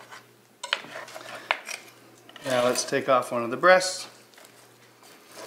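A knife cuts and crunches through crisp roast skin.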